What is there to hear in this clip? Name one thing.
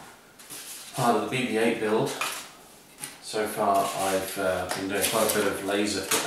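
Hands scrape and rustle a plastic part against paper.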